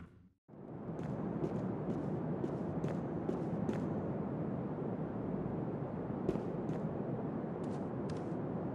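Footsteps tap on a wooden floor at a steady pace.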